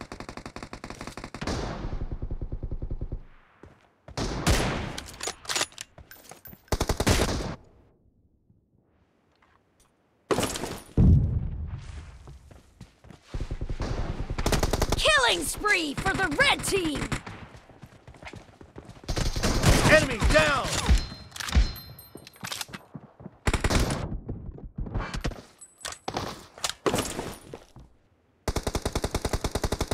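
A rifle fires sharp, loud shots again and again.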